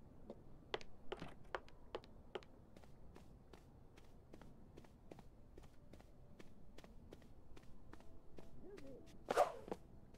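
Footsteps tap steadily across a wooden floor.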